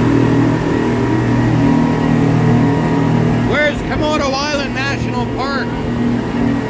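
A boat engine roars steadily at speed.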